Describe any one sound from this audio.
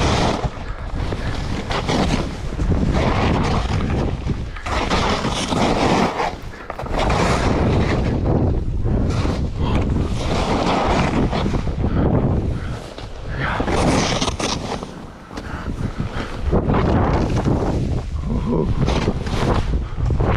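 Wind rushes loudly past close by.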